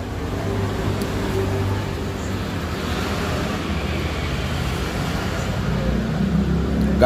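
A metal tool clinks against a car wheel.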